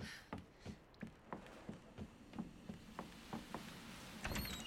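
Footsteps thud on a hard floor at a quick, even pace.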